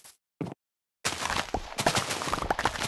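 Crops are trampled and broken with rustling crunches.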